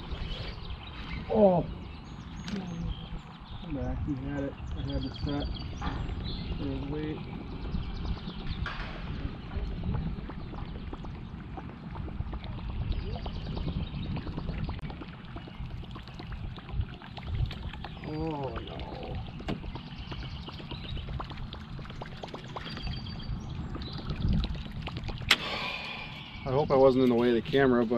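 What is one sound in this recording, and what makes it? A man talks with animation close to a microphone, outdoors.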